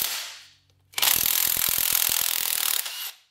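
A cordless power drill whirs.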